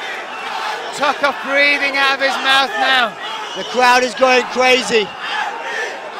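A crowd of men chants loudly in unison.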